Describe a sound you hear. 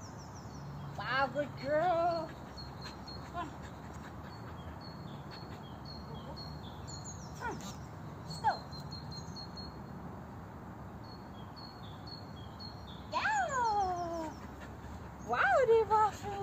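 A woman speaks encouragingly to a dog.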